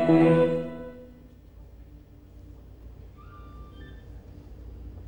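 A man speaks calmly into a microphone, heard through loudspeakers in a large room.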